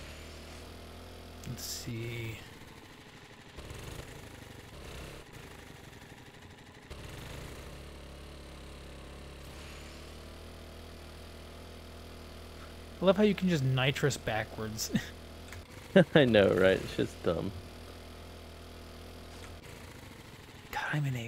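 A motorbike engine hums steadily as the bike rides over rough ground.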